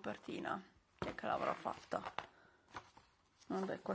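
Glossy magazine pages rustle and flap as they are turned.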